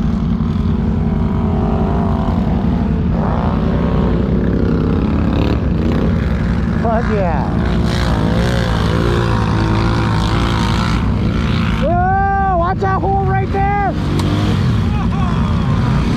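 ATV engines rumble and rev up and down close by.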